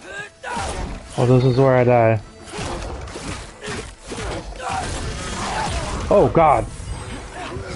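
A creature roars loudly.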